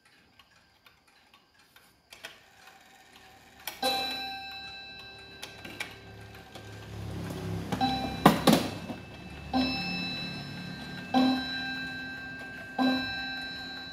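A mechanical wall clock ticks as its pendulum swings.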